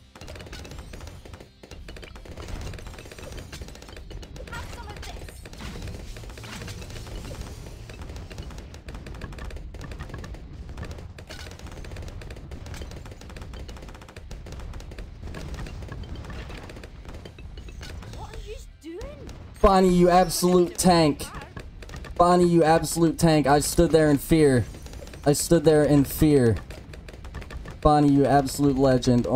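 Video game pops and blasts crackle steadily.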